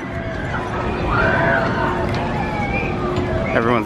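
Riders on a swing ride scream far off.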